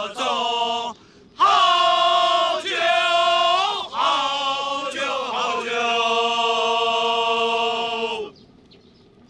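A chorus of men sings loudly in unison.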